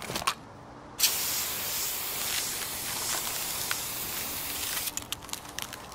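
A cutting torch hisses loudly and steadily against a wire fence.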